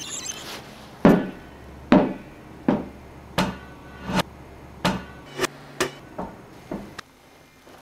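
A rubber ball bounces on a hard floor with quickening thuds.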